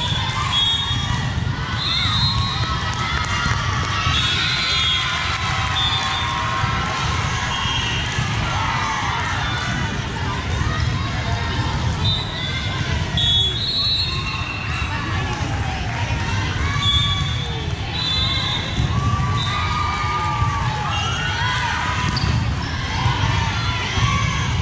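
A volleyball is struck with a dull slap.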